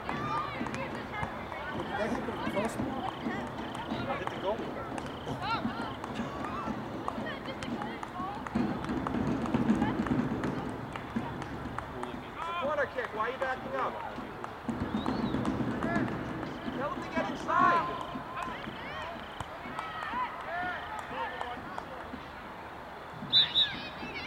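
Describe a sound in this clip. Young players shout and call out to each other across an open field outdoors.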